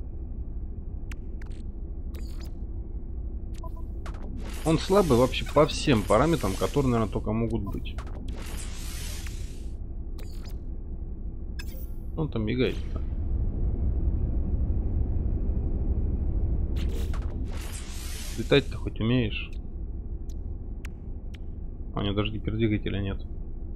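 Soft menu clicks and beeps sound now and then.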